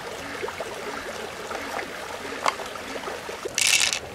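Shallow stream water trickles nearby.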